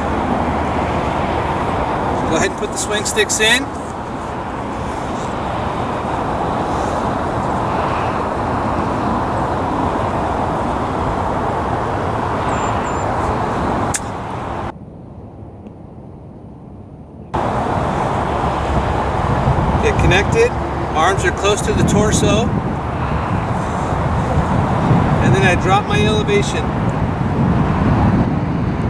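A man talks calmly, close by, outdoors.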